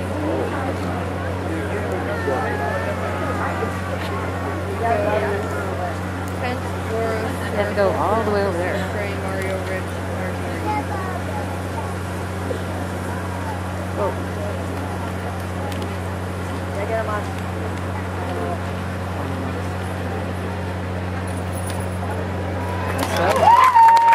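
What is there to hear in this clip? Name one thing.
A crowd murmurs and chatters in a large open space.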